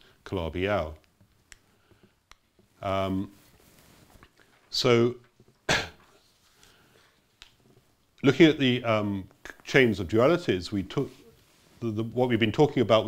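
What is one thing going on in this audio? An elderly man lectures into a microphone, speaking in short bursts with pauses.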